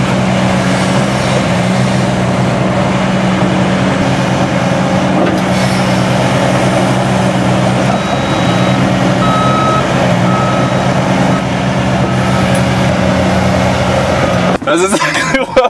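An excavator engine rumbles steadily close by.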